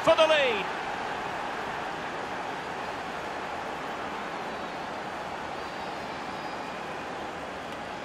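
A large stadium crowd cheers loudly and steadily.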